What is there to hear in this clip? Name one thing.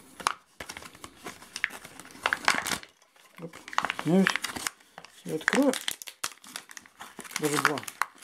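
Paper crinkles and rustles close by.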